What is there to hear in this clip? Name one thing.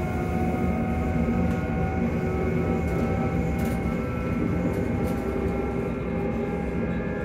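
A train rumbles and hums steadily while moving along the tracks.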